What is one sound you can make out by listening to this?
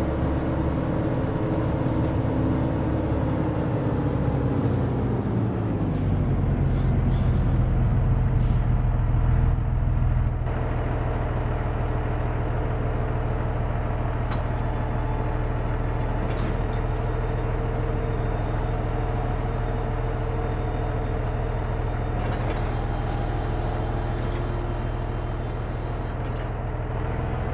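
A tractor engine drones steadily, its pitch dropping as it slows down.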